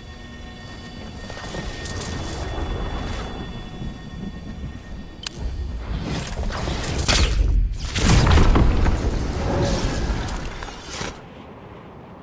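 Electricity crackles and zaps loudly in bursts.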